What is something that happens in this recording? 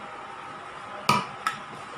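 A spatula clinks against a metal bowl.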